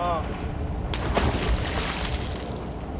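A float splashes into the water.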